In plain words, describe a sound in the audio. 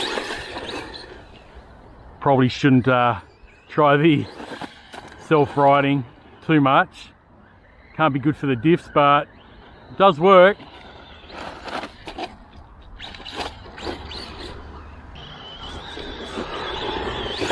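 A small electric toy car whirs as it drives over grass and gravel.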